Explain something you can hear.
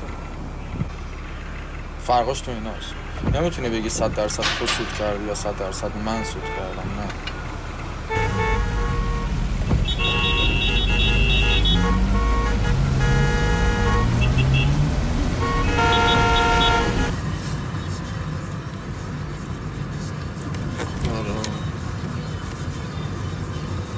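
Traffic hums slowly along a city street.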